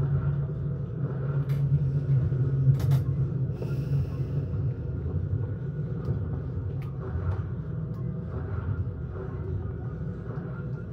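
A young man talks quietly close to a microphone.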